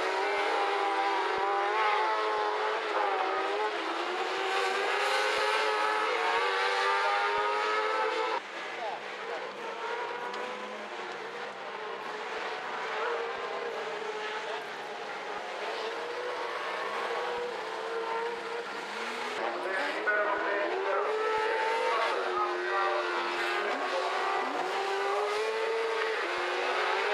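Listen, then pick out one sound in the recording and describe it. Racing buggy engines roar and rev loudly as the cars speed through a bend, outdoors.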